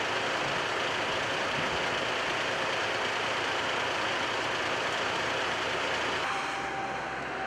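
Traffic roars steadily on a nearby motorway.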